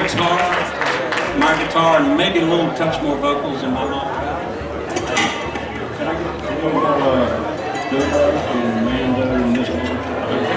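An upright bass plucks a bouncing bass line.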